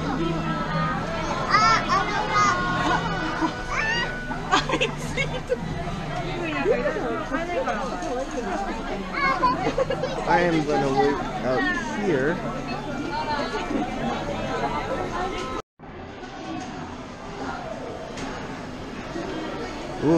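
A crowd of people chatters indoors around the listener.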